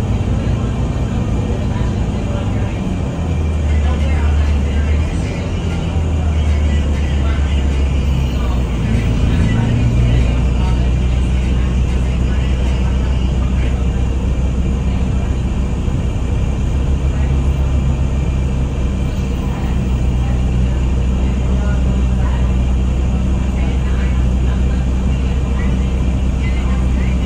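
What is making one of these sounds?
The bus rattles and creaks as it rolls along the street.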